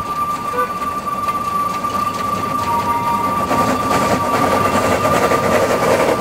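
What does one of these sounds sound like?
Steam hisses from a steam locomotive's cylinders.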